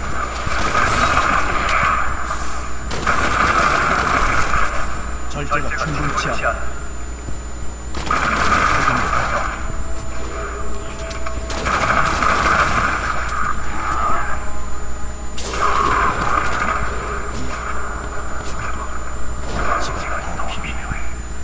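Magic spells crackle and blast in bursts during a fight.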